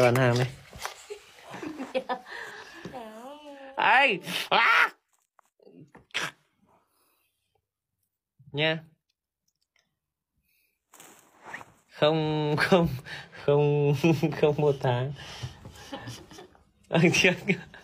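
A woman laughs softly, close by.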